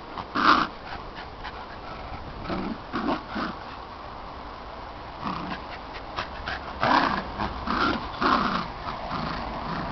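Dogs growl in short, rough bursts.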